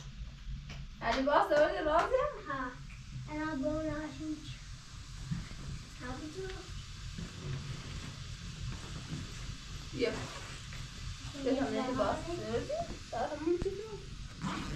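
A small child babbles.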